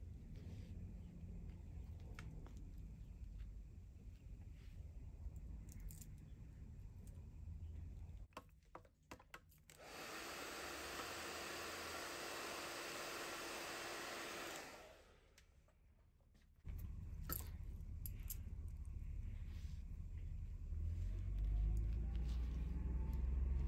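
Hair rustles softly as hands handle and part it.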